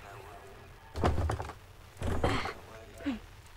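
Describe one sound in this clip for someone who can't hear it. A heavy wooden door thuds as it is opened.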